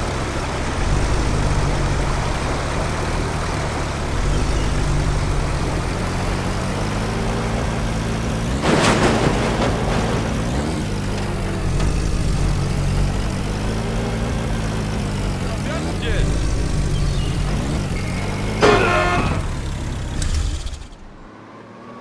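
A jeep engine rumbles steadily as it drives.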